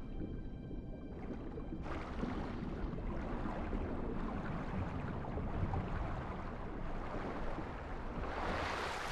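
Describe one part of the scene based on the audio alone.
Water gurgles and bubbles underwater.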